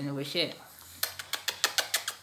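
A man kisses a dog with quick smacking sounds.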